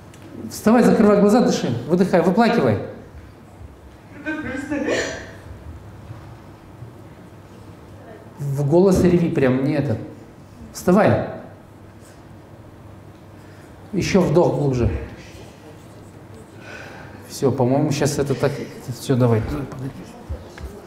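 A man speaks with animation through a microphone in an echoing room.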